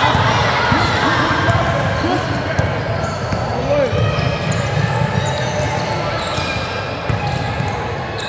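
Young women call out to one another in a large echoing gym.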